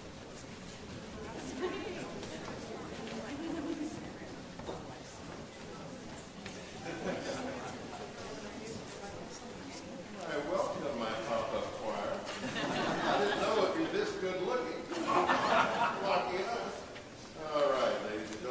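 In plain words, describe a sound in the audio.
Brass instruments play along with the choir.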